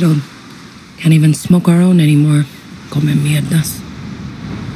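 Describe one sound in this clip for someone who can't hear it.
A woman speaks calmly, close up.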